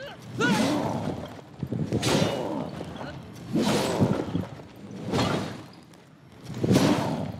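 Heavy blows land with loud whooshing bursts, again and again.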